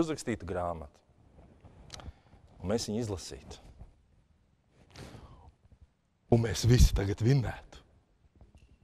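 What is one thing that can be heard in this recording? A man speaks with animation through a microphone, with pauses.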